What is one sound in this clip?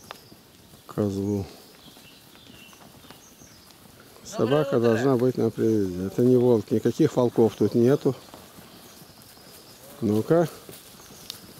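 A cow moos loudly nearby.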